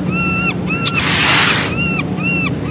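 A soft whoosh sweeps through.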